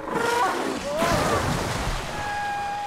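Water splashes loudly as something crashes into it.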